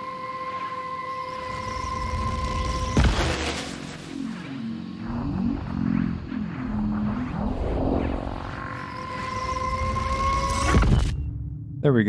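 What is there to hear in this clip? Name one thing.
A television hisses and whines with static.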